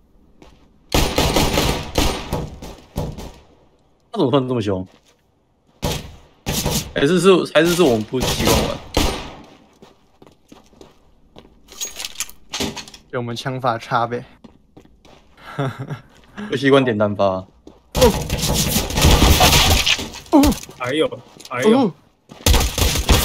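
Pistol shots crack out in quick bursts.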